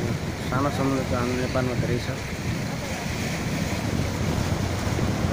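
Waves wash over rocks and break with a rushing hiss.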